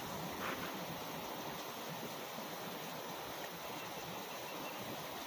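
A shallow river rushes and splashes steadily over rocks close by.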